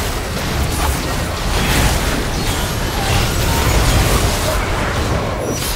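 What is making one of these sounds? Video game spells whoosh and crackle in a busy fight.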